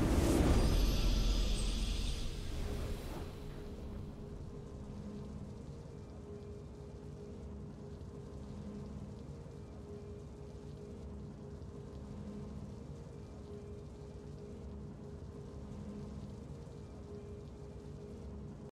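Game music swells and then plays softly.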